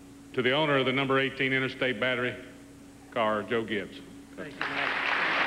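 A man announces through a loudspeaker in a large hall.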